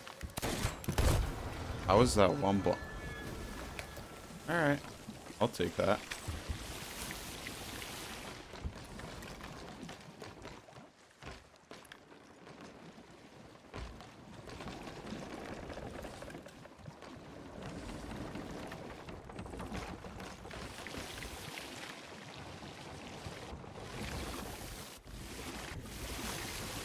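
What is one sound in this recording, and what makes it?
Sea waves wash steadily.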